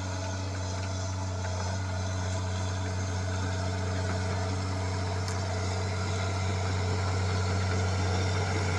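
Metal tracks of a bulldozer clank and squeak.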